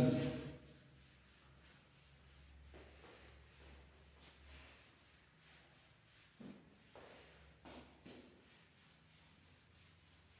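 A felt eraser rubs softly across a whiteboard.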